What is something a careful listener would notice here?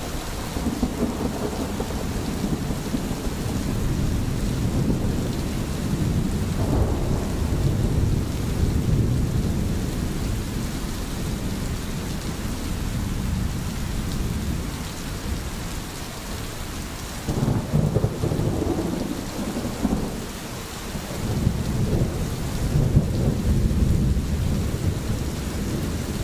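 A stream gurgles and splashes steadily over stones.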